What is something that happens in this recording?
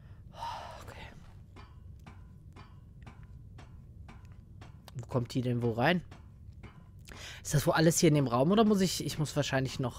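Footsteps clank on metal ladder rungs.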